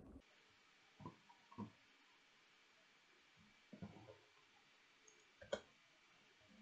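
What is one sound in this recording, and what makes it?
Small metal tool parts click and clack as they are handled.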